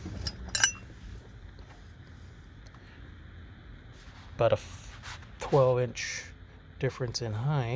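Metal parts clink and rattle as they are handled.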